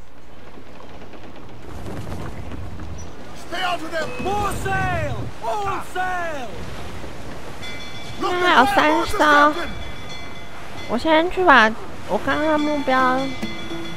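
Waves wash and splash against a sailing ship's hull.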